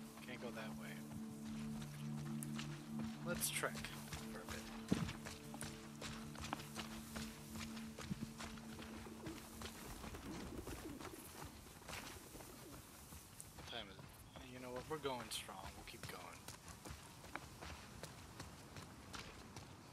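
Footsteps run quickly through tall grass.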